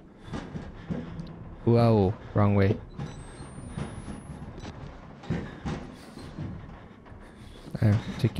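A young man talks close to a microphone and now and then cries out loudly.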